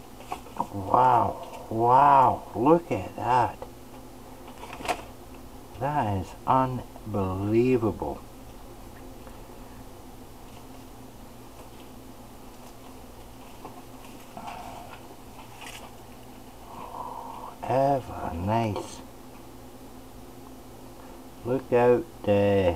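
A knife slices through raw meat.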